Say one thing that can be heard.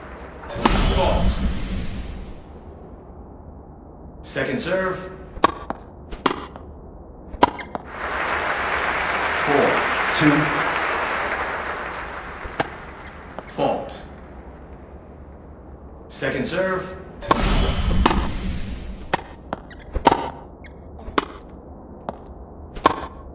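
A tennis ball is hit back and forth with sharp pops.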